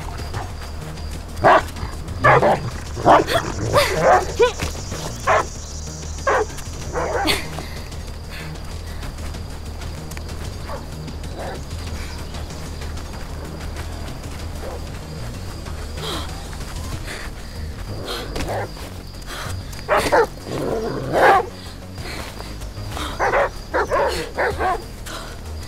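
Footsteps crunch softly over grass and rock.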